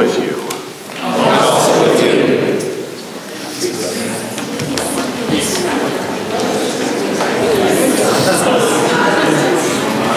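A crowd of people chatters and greets one another.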